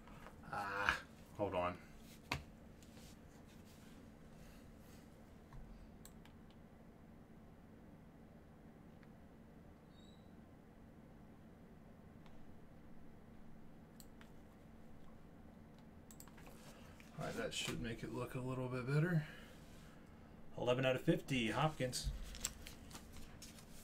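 Trading card wrappers crinkle and rustle.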